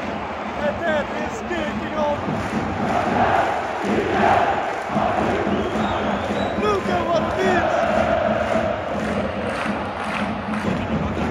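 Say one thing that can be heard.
A huge football crowd chants and sings in a large open stadium.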